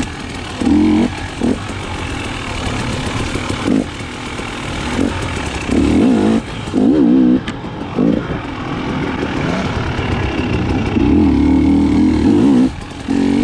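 A dirt bike engine revs up and down in bursts.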